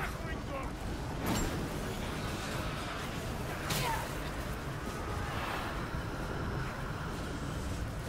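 A fiery weapon blasts with a whooshing roar.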